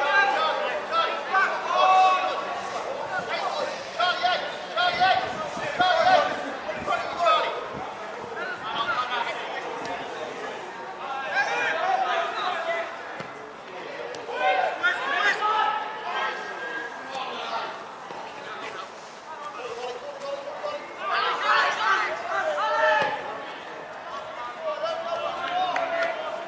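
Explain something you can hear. Young players shout and call to each other across an open pitch.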